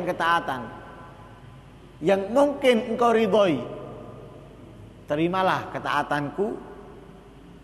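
A man speaks with animation into a microphone in an echoing hall, pausing between phrases.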